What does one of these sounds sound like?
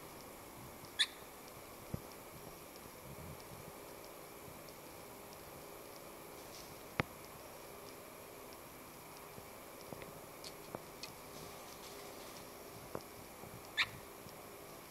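A small bird chirps in short, sharp calls.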